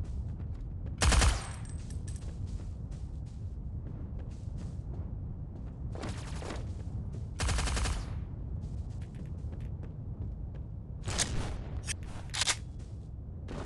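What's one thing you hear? A smoke grenade hisses loudly in short bursts.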